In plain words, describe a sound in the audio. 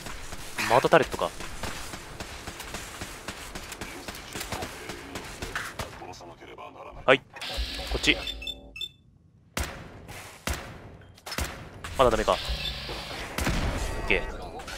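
Laser weapons fire in short zaps.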